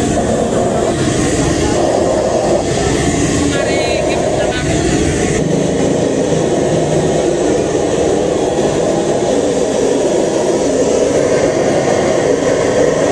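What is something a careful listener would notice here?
Loud music blares through loudspeakers outdoors.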